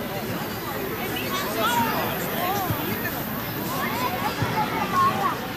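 A crowd of men and women chatter at a distance outdoors.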